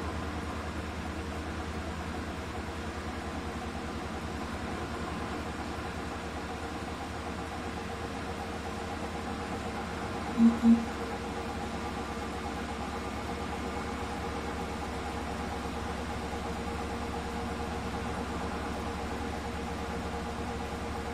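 Water sloshes and swirls inside a washing machine drum.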